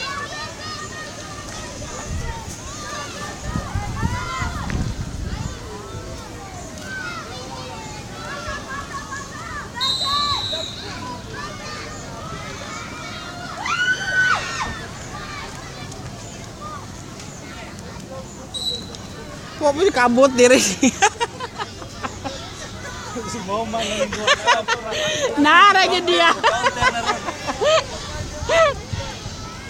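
Distant people shout and call out across an open field.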